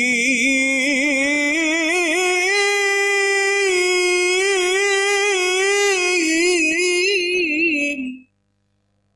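An elderly man chants in a long, wavering melody through a microphone and loudspeakers.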